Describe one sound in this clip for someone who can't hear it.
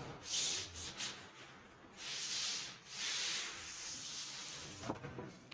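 A felt eraser wipes across a chalkboard.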